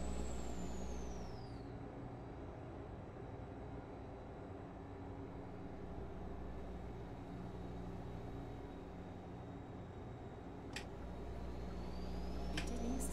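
A truck engine hums steadily at cruising speed.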